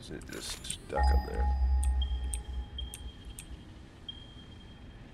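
Electronic tones beep and chime.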